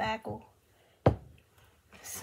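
A mug is set down on a hard table with a knock.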